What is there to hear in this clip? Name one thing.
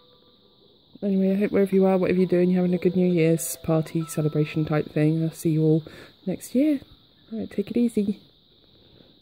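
A sleeping baby snores loudly close by.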